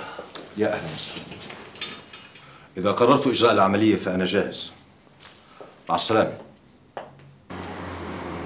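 A middle-aged man speaks firmly and close by.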